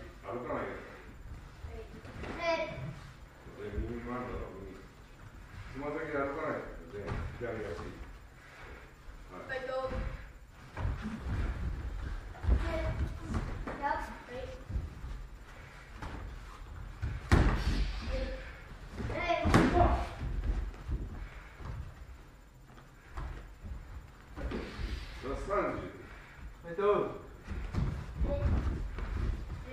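Bare feet shuffle and thump on a padded floor.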